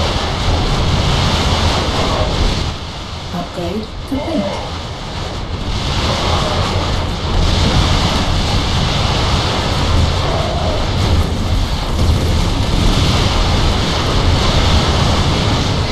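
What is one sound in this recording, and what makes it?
Rapid gunfire and explosions rattle in a battle.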